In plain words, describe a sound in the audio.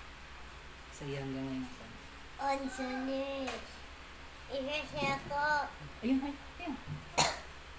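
A girl speaks cheerfully close by.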